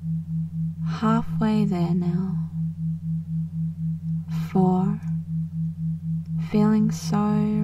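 A man speaks slowly and calmly, close by.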